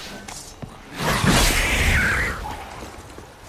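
A sword swings and strikes with a sharp clash.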